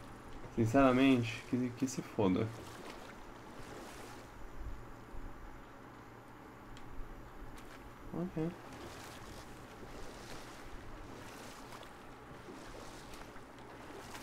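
Oars splash softly in water.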